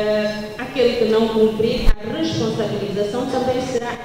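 A man speaks into a microphone.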